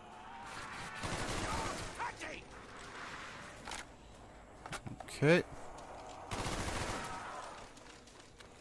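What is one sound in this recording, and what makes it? Gunshots fire in bursts.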